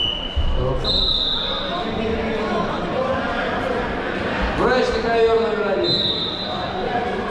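A referee's whistle blows sharply a few times.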